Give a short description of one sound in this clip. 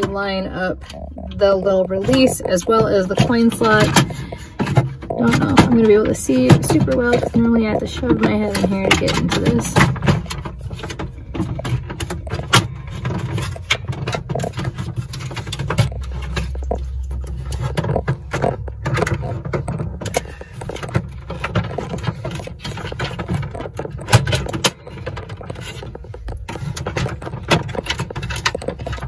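Small plastic parts click and rattle as they are handled up close.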